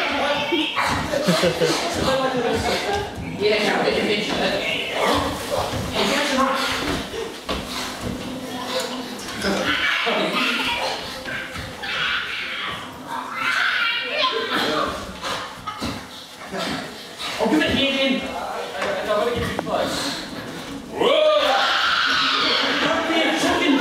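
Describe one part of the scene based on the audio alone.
Feet thud and scuffle on a wooden floor.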